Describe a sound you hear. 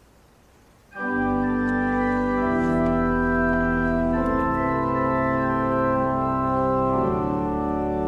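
A pipe organ plays loud sustained chords.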